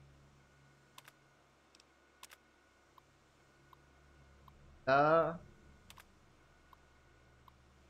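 A computer terminal ticks softly as text prints out.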